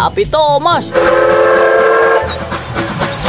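A steam train whistle blows.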